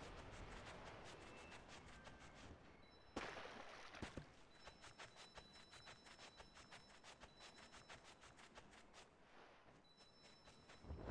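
Light footsteps patter across grass.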